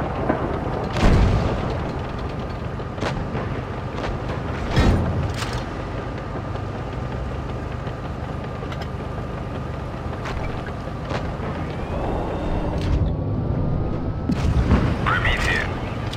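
A tank cannon fires with loud booms.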